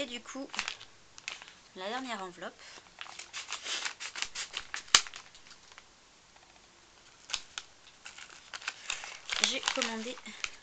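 A young woman talks calmly and close to a microphone.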